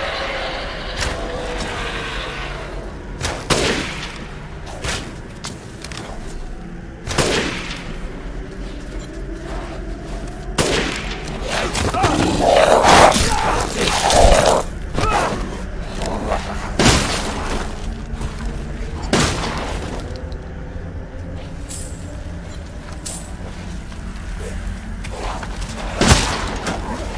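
Gunshots ring out with echoes.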